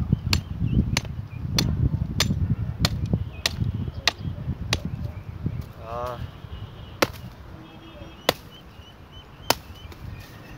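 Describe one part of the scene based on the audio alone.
A knife chops sharply into bamboo in quick, even blows.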